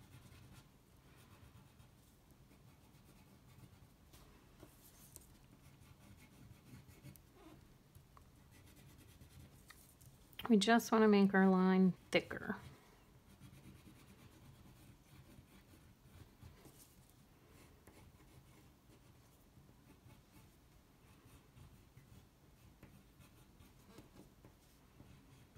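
A crayon scratches softly across paper.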